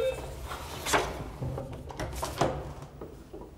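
A door clicks and swings open.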